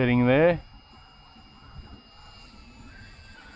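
A drone whirs high overhead.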